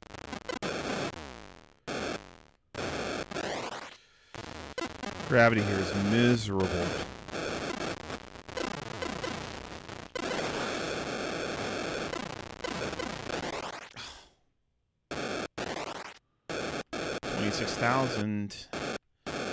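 Electronic video game blips, buzzes and explosions play in rapid bursts.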